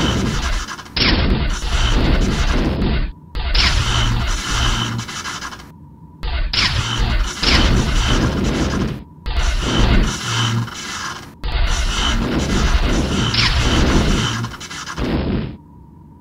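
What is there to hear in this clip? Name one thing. Laser shots zap in quick bursts.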